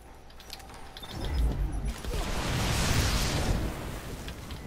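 An explosion booms with a loud rumble.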